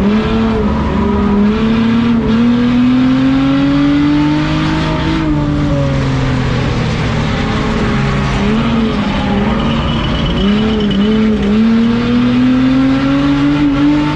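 A car engine revs at racing throttle, heard from inside the cabin, rising and dropping in pitch as it speeds up and backs off.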